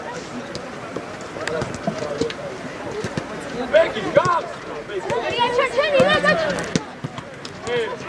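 A football thuds when kicked.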